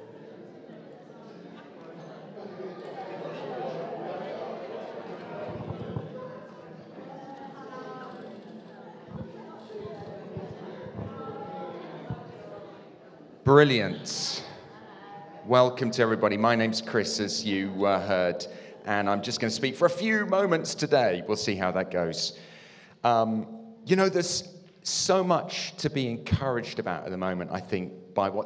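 A man speaks calmly into a microphone, heard through loudspeakers in an echoing room.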